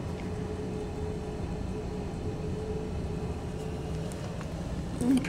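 A vehicle engine hums steadily, heard from inside.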